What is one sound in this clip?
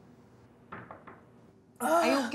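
A young woman knocks on a door.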